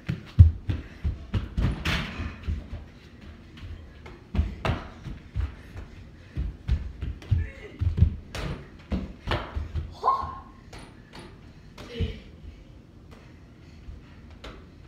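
A basketball bounces on a floor indoors.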